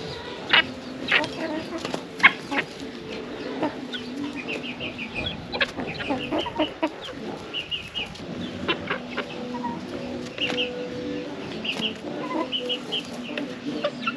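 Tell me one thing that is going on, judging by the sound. Hens cluck softly and steadily nearby.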